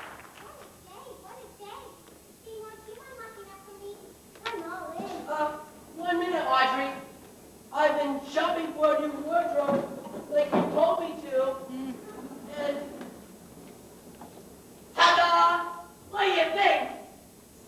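A woman speaks in reply.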